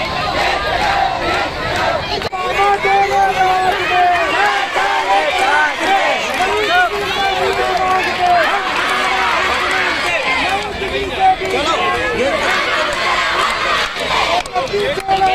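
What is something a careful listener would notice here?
A large crowd of young men and women shouts slogans together outdoors.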